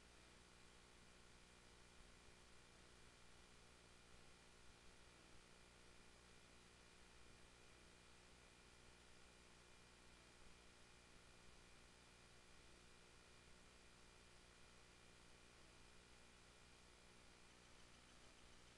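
A large outdoor crowd murmurs and shouts.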